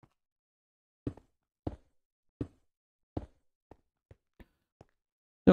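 Stone blocks thump into place.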